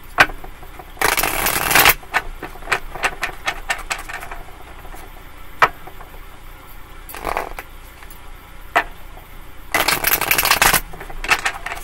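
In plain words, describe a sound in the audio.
A woman shuffles a deck of cards close by.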